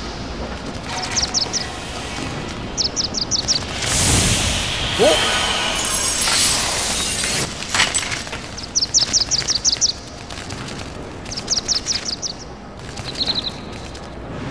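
A bird chirps in quick bursts.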